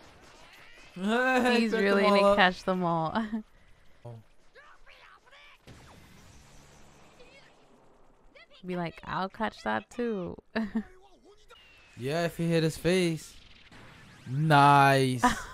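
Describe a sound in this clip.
A young man laughs and talks with animation close to a microphone.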